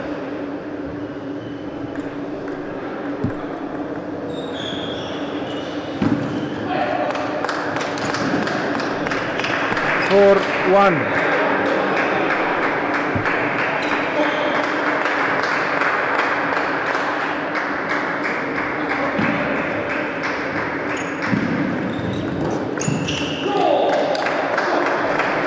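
A table tennis ball clicks sharply back and forth off paddles and a table.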